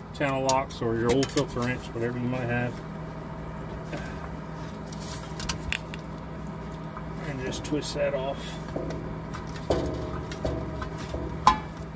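A metal wrench clicks and scrapes against a metal canister.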